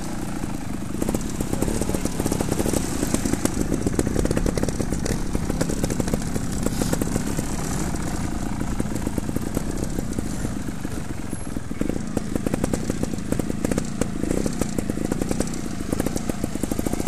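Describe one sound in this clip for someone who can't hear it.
Tyres roll over bumpy dirt and grass.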